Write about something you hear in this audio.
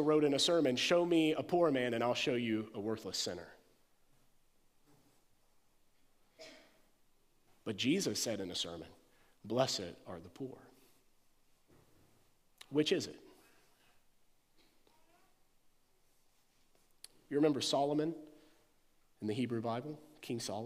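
A man speaks calmly over a microphone, with long pauses.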